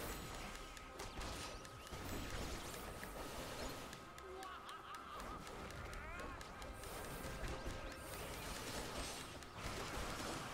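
Blades swish and clash in quick combat.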